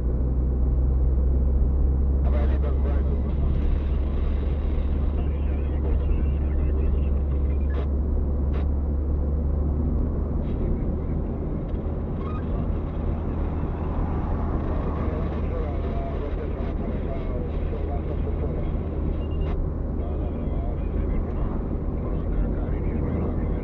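Tyres roll and rumble on an asphalt road.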